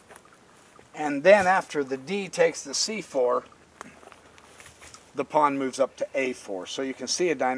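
A middle-aged man speaks calmly and clearly outdoors, close by.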